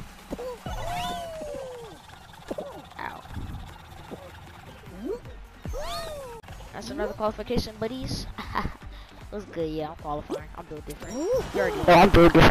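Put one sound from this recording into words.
Playful cartoon sound effects boing and whoosh.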